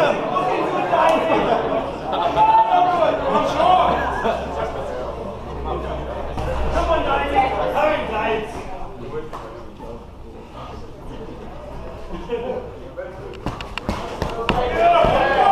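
A crowd of men and women chatters and shouts in a large echoing hall.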